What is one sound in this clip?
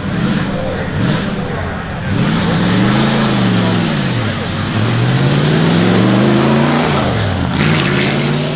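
A vintage race car engine revs hard, rising and falling in pitch.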